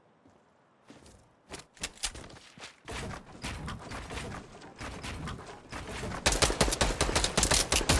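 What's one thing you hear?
Wooden walls are built piece by piece with quick clattering knocks.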